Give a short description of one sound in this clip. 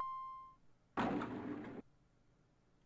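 Elevator doors slide open.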